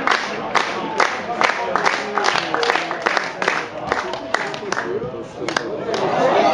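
A crowd of fans claps in a steady rhythm.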